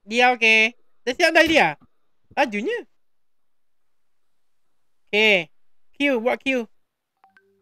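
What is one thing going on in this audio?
A man speaks calmly into a microphone, in short phrases.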